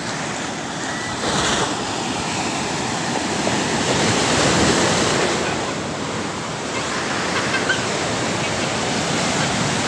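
Waves crash and wash onto a beach.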